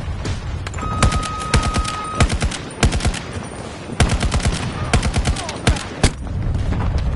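Rifle shots ring out in quick bursts.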